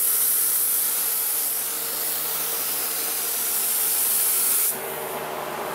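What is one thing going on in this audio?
A spray gun hisses steadily up close.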